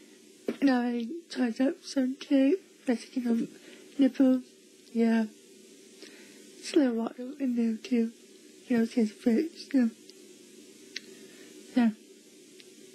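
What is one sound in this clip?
A young girl talks excitedly, close by.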